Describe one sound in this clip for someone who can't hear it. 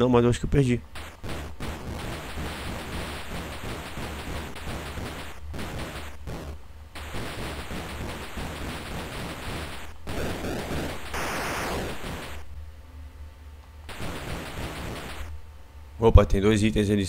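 Retro video game sound effects blip and buzz as a character fires shots.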